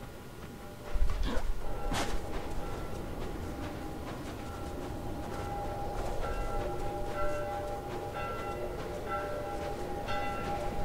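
Wind blows strongly outdoors in a snowstorm.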